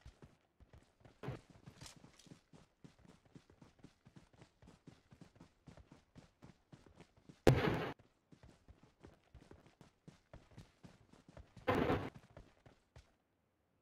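Footsteps run quickly over grass in a steady rhythm.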